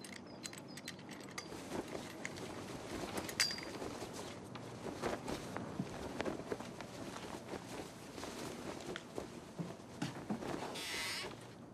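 A flag flaps and snaps in the wind.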